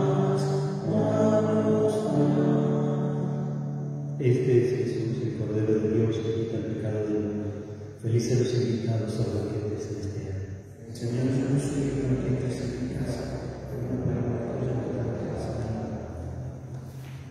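A middle-aged man chants steadily through a microphone in an echoing hall.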